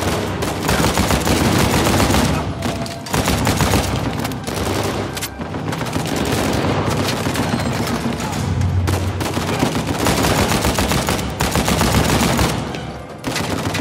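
Automatic rifles fire rapid bursts that echo loudly in a hard, enclosed space.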